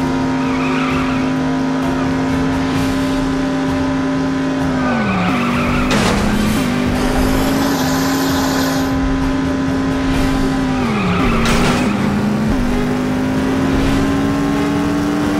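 A racing car engine roars steadily, dropping in pitch as the gears shift.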